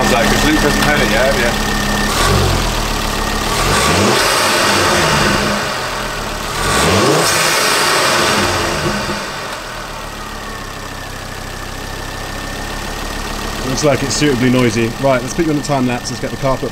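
A car engine idles and revs sharply, then settles back to a steady idle.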